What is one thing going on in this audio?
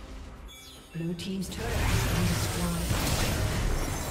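Fighting sound effects from a video game clash and burst loudly.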